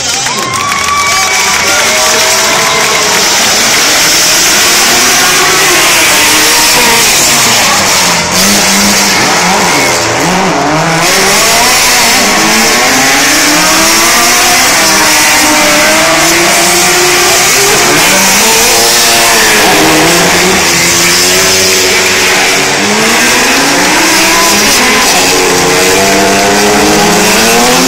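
Car engines rev and whine loudly as cars drift.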